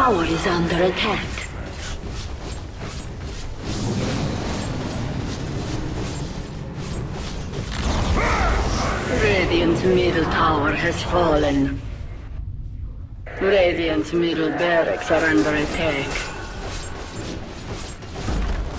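Fantasy battle sound effects clash and crackle.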